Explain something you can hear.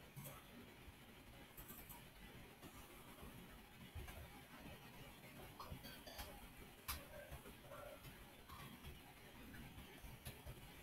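Sharp clicks and thuds of blocks being struck sound in quick bursts.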